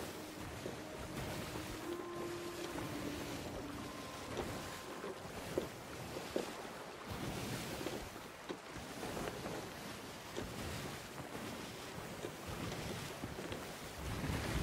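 Rough sea waves surge and splash steadily.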